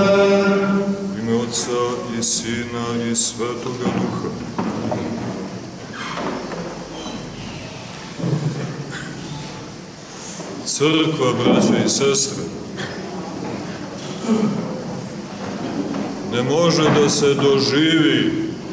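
A man speaks and intones in a loud, measured voice, echoing in a large hall.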